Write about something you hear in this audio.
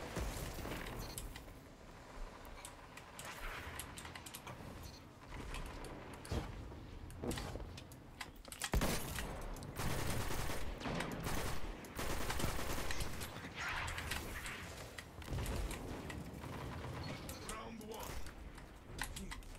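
Energy weapons fire in short bursts.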